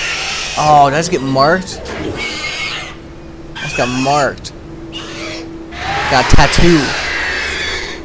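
A creature shrieks and hisses loudly.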